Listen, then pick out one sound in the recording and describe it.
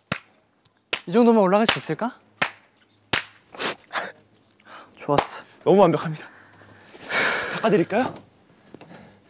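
Young men talk and laugh with animation.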